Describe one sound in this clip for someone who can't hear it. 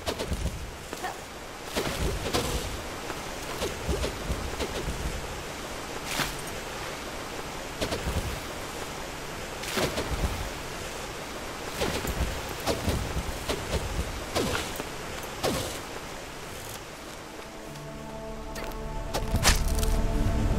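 Waterfalls rush and splash steadily.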